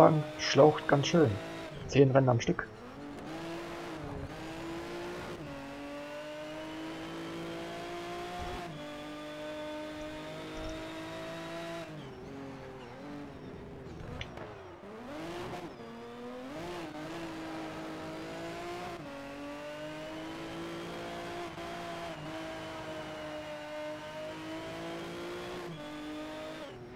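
A racing car engine screams at high revs and shifts up and down through the gears.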